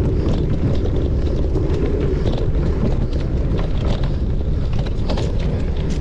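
Tyres crunch and rattle over dirt and dry leaves.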